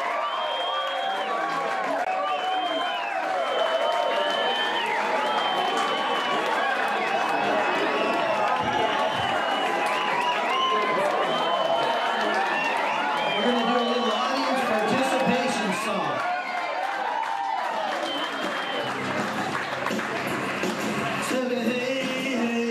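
A crowd claps and cheers loudly in a noisy room.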